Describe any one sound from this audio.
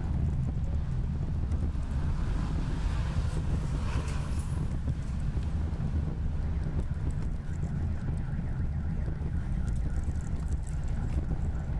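Traffic rumbles steadily along a street outdoors.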